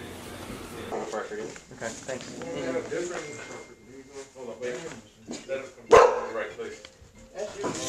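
Several adult men talk over one another nearby.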